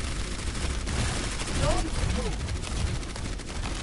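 Electric crackles and zaps burst out.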